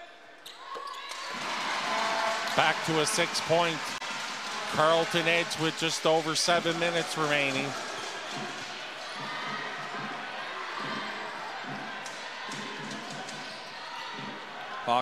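A crowd cheers and chants in a large echoing gym.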